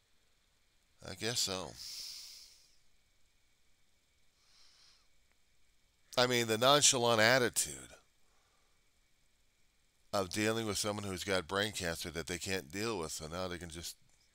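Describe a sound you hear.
A middle-aged man speaks with animation into a headset microphone.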